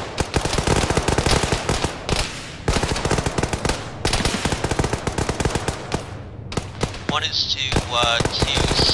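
Rapid gunfire crackles close by in bursts.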